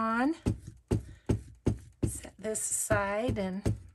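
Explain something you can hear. A glue stick rubs across paper.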